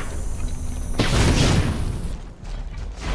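A fiery spell whooshes and crackles.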